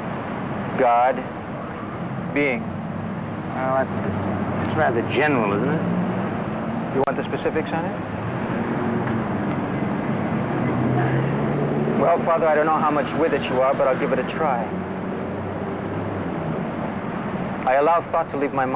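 A young man speaks intently, close by.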